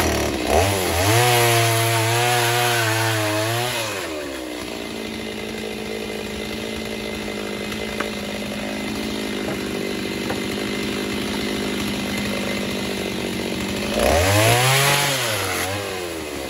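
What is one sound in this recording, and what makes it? A chainsaw cuts through wood.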